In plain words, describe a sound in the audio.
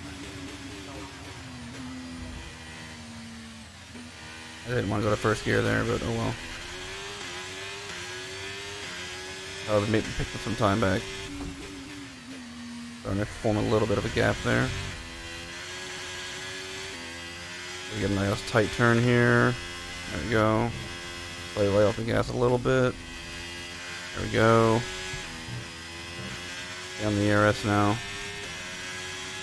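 A racing car engine whines and shifts through gears.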